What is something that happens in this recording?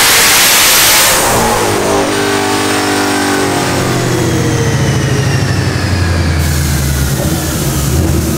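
A powerful car engine roars loudly, then winds down and settles into a deep, rumbling idle.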